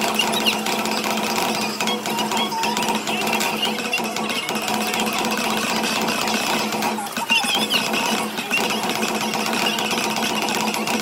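Drumsticks beat rapidly on a large drum.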